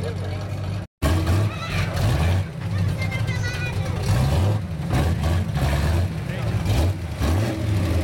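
A hot rod engine rumbles through open exhaust pipes, blipping the throttle.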